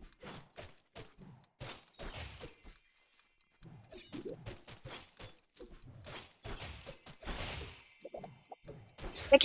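Quick sharp game hit effects crackle in rapid bursts.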